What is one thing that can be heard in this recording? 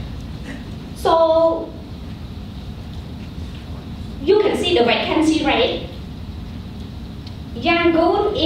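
A young woman speaks calmly through a microphone.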